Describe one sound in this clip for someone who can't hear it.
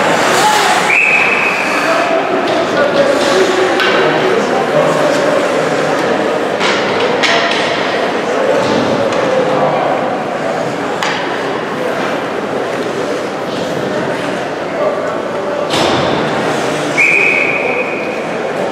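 A referee's whistle blows shrilly.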